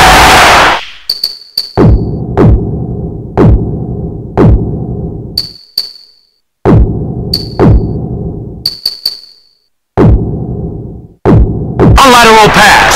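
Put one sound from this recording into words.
Short menu clicks sound one after another.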